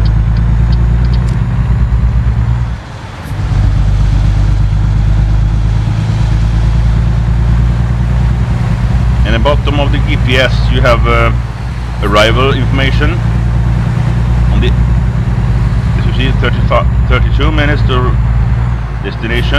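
A truck engine drones steadily at highway speed.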